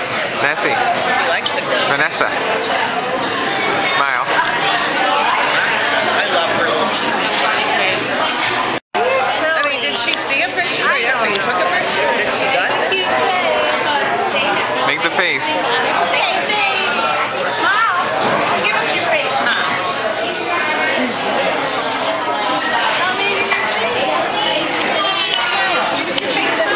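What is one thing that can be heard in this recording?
Many diners chatter in the background.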